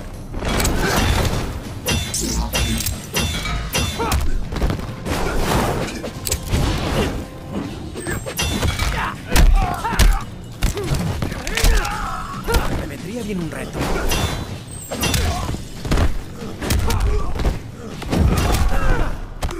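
Flames whoosh and roar in bursts.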